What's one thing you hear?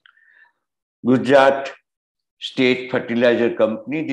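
An elderly man speaks calmly through an online call.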